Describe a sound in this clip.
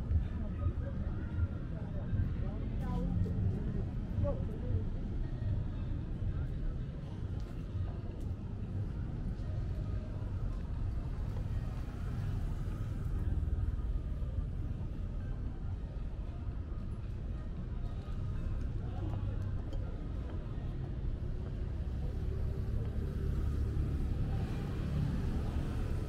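Footsteps tap on paving stones close by.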